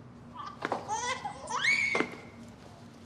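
A wooden door creaks as it swings open.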